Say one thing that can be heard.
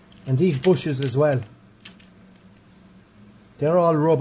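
A ratchet wrench clicks as it turns a bolt.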